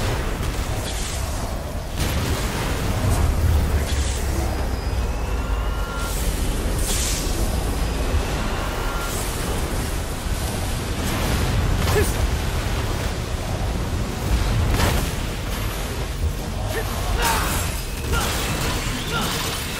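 Sword slashes strike with sharp impacts.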